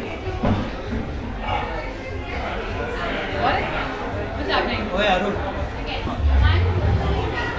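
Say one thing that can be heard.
A young woman speaks nearby.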